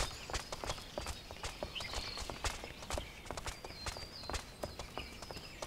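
Footsteps thud on wooden boards and stairs.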